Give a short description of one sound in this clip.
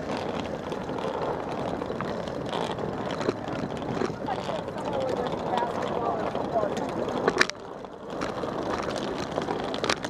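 Suitcase wheels roll and rattle over pavement nearby.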